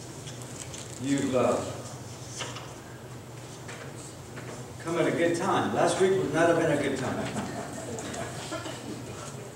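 A man speaks calmly from a distance in a large echoing hall.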